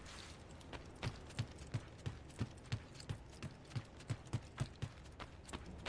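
Quick footsteps run across a hard floor.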